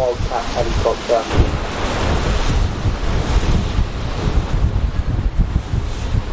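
Strong wind gusts and rumbles across the microphone outdoors.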